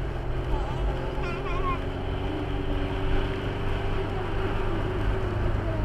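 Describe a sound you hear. A passing truck rumbles close by.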